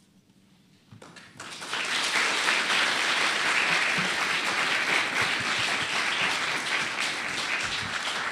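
An audience applauds loudly.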